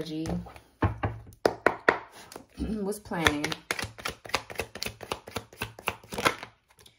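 Playing cards are shuffled by hand, with quick soft riffling snaps.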